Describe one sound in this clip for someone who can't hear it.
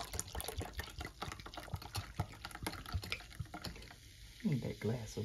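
Liquid pours and fizzes into a glass.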